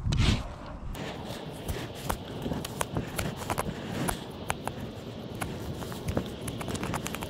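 A hoof knife scrapes and pares a horse's hoof.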